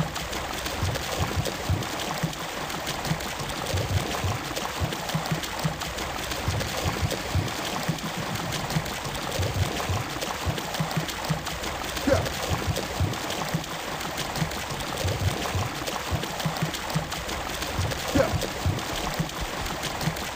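Horse hooves clop rhythmically on hard ground.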